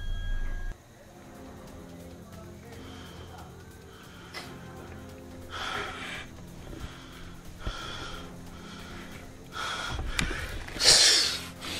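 A young man sobs and cries close by.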